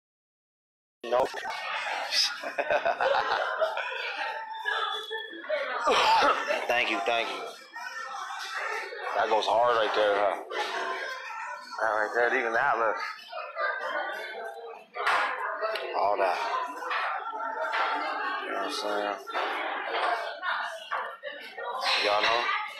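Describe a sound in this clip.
A man speaks with animation close to a phone microphone.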